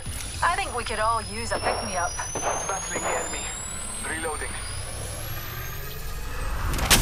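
An electronic device charges up with a rising whine.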